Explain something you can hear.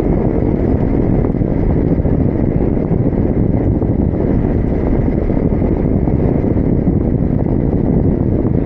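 Strong wind roars and buffets steadily.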